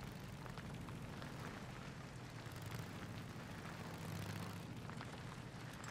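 A motorcycle engine rumbles steadily as it rides.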